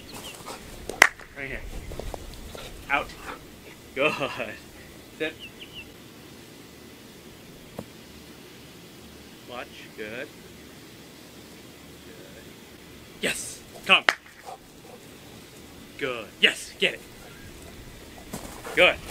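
A man calls out short commands to a dog outdoors.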